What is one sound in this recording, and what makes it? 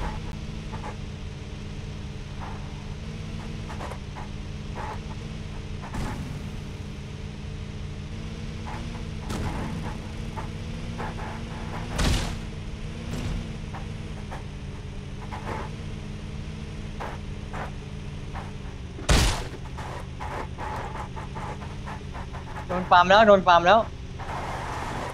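A truck engine rumbles steadily as it drives over rough ground.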